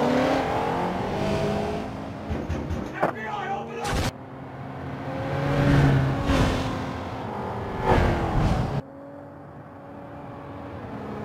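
A car engine roars and revs as a car speeds past.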